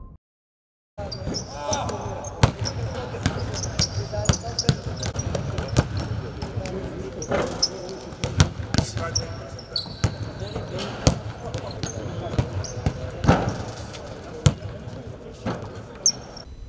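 Basketballs bounce on a hard court with sharp thuds, echoing in a large hall.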